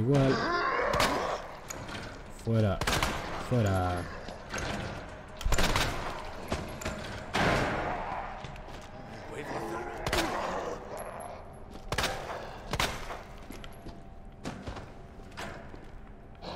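A handgun fires shots that echo in an enclosed space.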